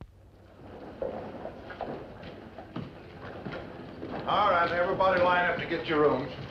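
Footsteps thud on a wooden floor as several people walk in.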